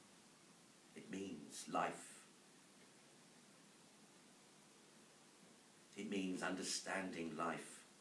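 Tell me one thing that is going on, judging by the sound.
A man speaks calmly through a microphone in short phrases.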